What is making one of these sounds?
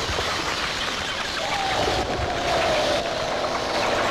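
A swarm of bats flutters their wings.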